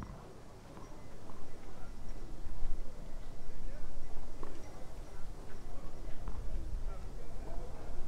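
A tennis ball bounces on clay with soft thuds.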